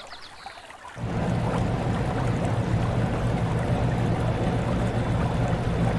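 A water wheel churns and splashes in rushing water.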